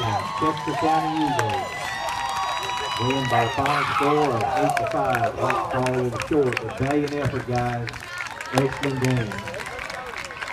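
Young men cheer and shout outdoors.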